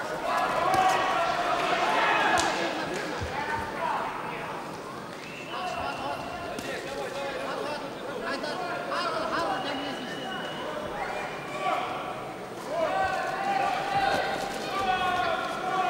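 Gloves thud against a body as a boxer throws punches.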